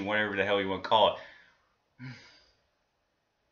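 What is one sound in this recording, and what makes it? A young man speaks casually, close to a microphone.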